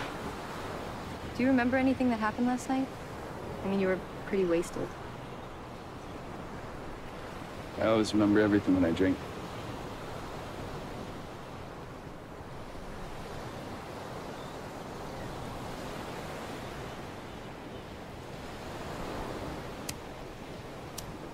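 Waves wash gently on a beach outdoors.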